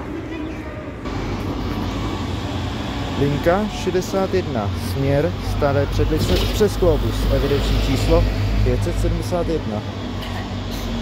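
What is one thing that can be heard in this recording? A trolleybus drives past close by with a humming, whining motor.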